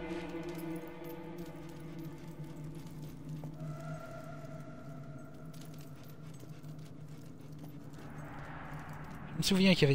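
Footsteps tread slowly on stone.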